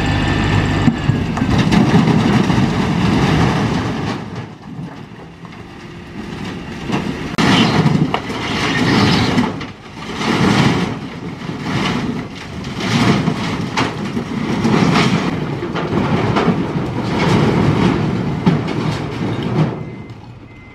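Rocks tumble and clatter out of a tipping truck bed in repeated rumbling bursts.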